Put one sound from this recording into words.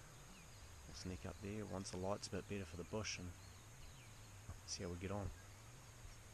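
A young man speaks quietly and close by, in a hushed voice.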